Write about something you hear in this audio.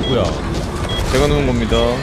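Electricity crackles and zaps loudly in a burst.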